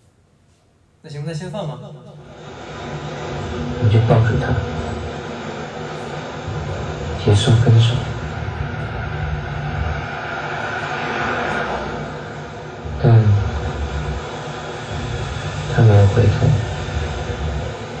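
A young man speaks calmly into a microphone, close and slightly amplified.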